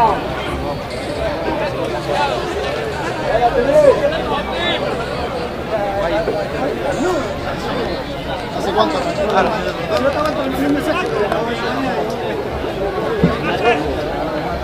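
Young men shout to one another across an open field.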